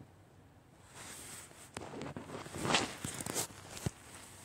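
A rotary telephone dial whirs and clicks as it spins back.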